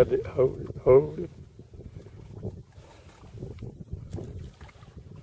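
Water laps gently against a boat.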